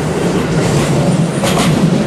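Another train rolls past on a nearby track.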